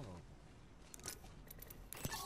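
A short electronic ping chimes.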